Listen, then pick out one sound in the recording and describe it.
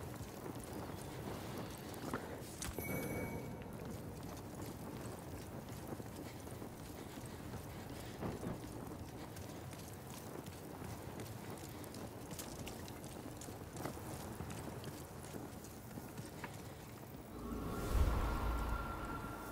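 Armoured footsteps clank on wooden boards and stone.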